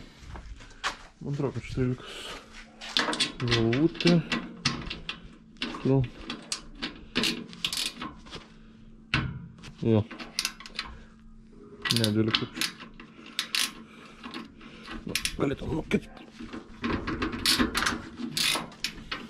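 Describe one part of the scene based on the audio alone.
Plastic panels knock and rattle as hands move them about.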